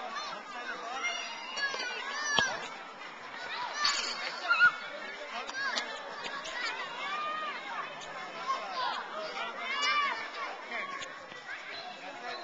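Young children shout and chatter nearby, outdoors.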